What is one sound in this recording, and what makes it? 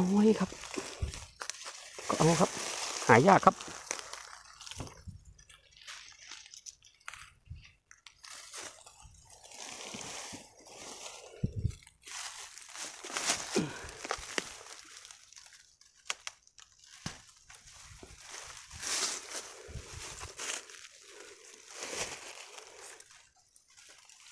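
Dry leaves rustle and crackle as a hand pushes through them.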